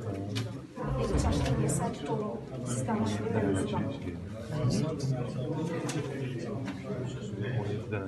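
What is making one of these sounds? Several men talk nearby in a room with a slight echo.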